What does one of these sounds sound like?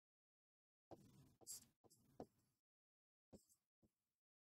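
A pen taps and scratches on a board.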